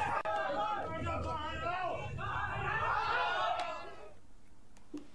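A crowd of young men shouts and jostles noisily.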